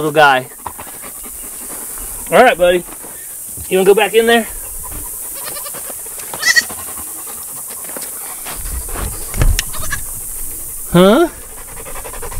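A young goat bleats loudly.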